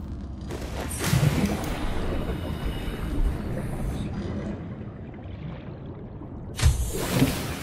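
A low underwater rumble fills the surroundings.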